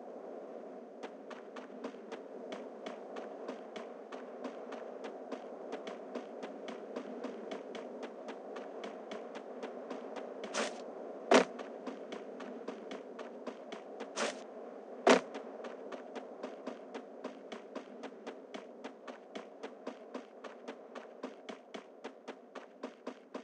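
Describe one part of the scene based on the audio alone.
Quick, even footsteps patter across grass.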